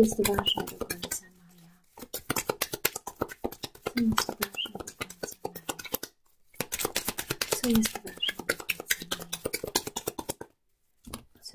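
Playing cards are shuffled with quick, flicking riffles.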